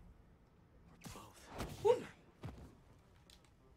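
Game sound effects whoosh and thud during a fight.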